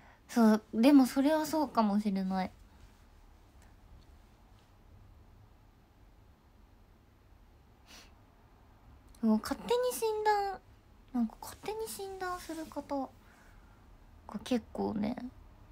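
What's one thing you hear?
A young woman speaks animatedly, close to a microphone, with pauses between phrases.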